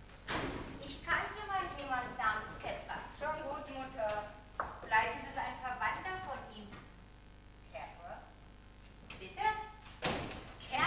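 A woman speaks with animation in a large room, heard from a distance.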